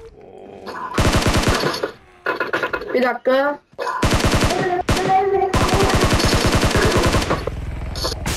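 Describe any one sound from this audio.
Rapid automatic gunfire rattles in short bursts.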